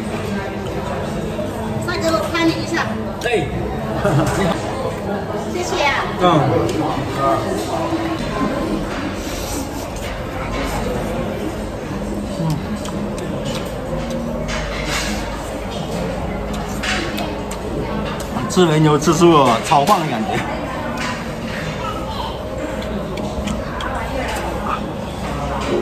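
A young man chews and slurps food noisily.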